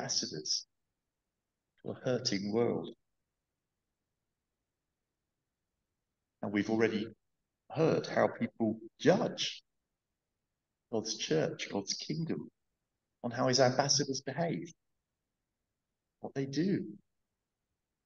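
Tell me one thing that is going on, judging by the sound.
A middle-aged man speaks slowly and calmly into a microphone, with pauses between phrases.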